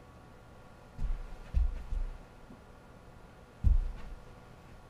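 A golf club taps lightly on a ball and mat.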